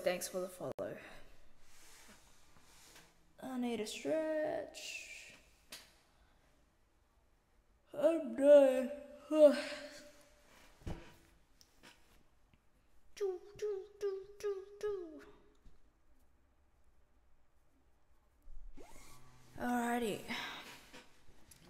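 A young woman talks and sings with animation into a close microphone.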